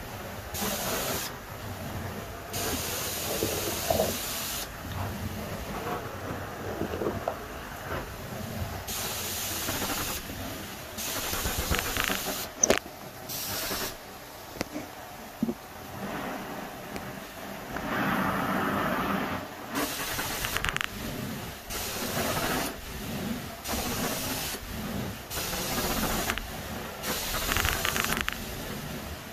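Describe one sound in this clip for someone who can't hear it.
A carpet cleaning wand sucks water with a loud, rushing hiss that rises and falls with each stroke.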